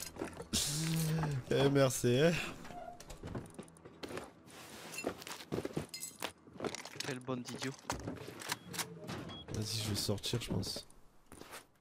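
Items clatter and click as they are moved about in quick succession.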